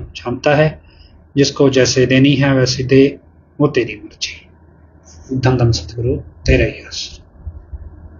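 A man speaks calmly and close to a microphone, in short phrases.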